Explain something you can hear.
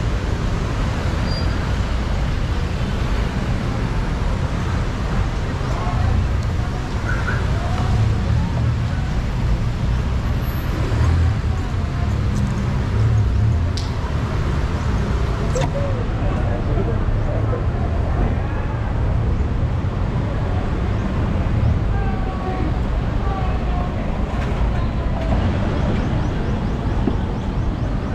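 A woman talks and laughs nearby.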